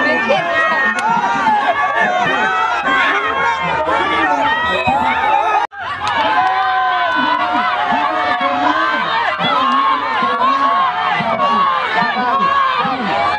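A large crowd of men and women shouts and cheers loudly nearby outdoors.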